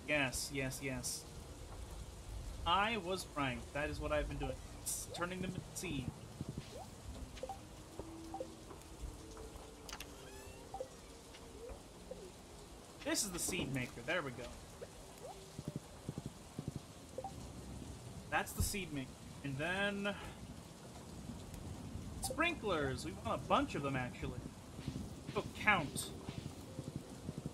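A man talks calmly and casually into a close microphone.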